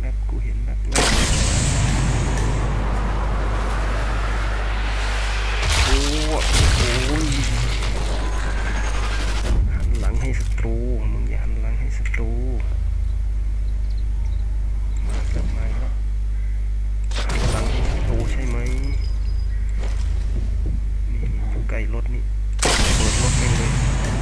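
A rifle fires with a loud, echoing crack.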